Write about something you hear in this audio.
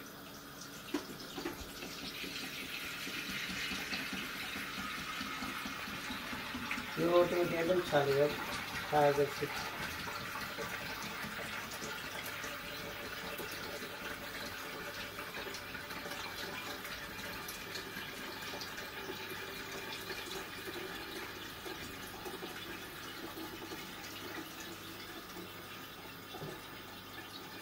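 Liquid pours steadily from a jug into a pot.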